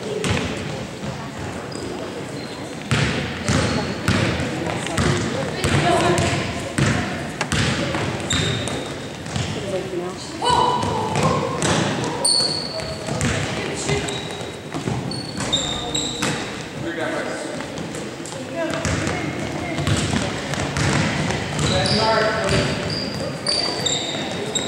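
Players call out to each other across an echoing gym.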